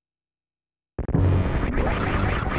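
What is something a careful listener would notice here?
An energy blast bursts with a loud, crackling boom.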